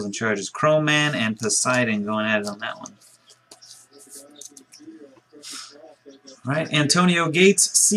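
Trading cards and plastic wrappers rustle and click in hands.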